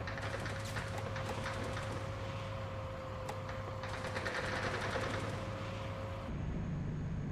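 Tank treads clatter and squeak.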